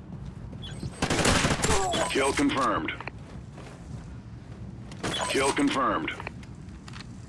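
Automatic gunfire rattles in short, loud bursts.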